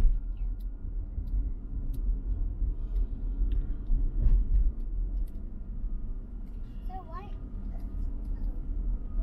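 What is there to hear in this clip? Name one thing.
A car engine hums steadily with road rumble from inside a moving car.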